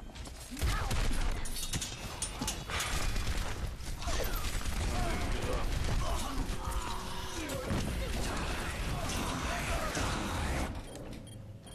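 Rapid bursts of video-game gunfire ring out.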